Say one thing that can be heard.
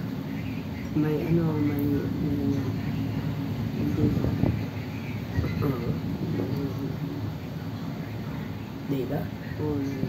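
A woman speaks casually, close to the microphone.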